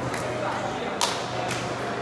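Two men slap hands together.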